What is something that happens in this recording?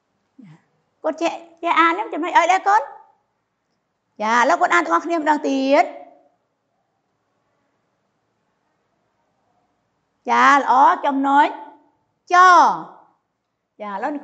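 A woman speaks calmly and clearly into a close microphone, pausing between phrases.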